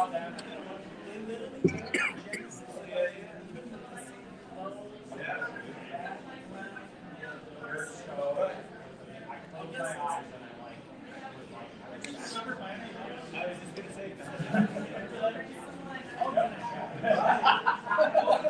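Many people chat at once in a room, a busy murmur of voices.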